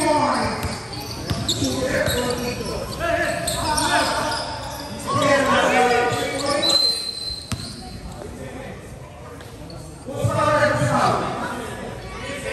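A crowd of young spectators shouts and chatters nearby.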